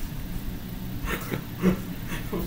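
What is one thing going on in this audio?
A middle-aged man laughs softly close to a microphone.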